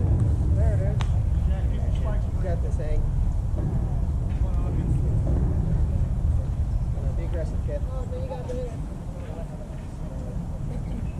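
Wind rumbles steadily outdoors.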